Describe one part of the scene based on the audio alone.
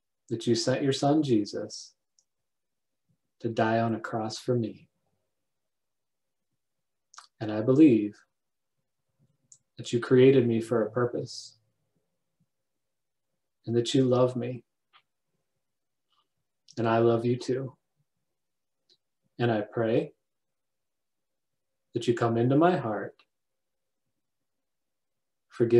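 A middle-aged man speaks calmly and close to a microphone, in short phrases with pauses.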